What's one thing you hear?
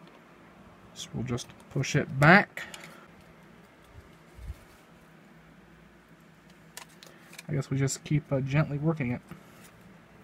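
A plastic casing clicks and rattles as it is handled.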